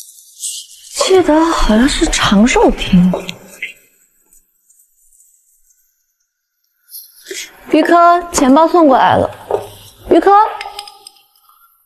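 A young woman speaks quietly and wonderingly, close by.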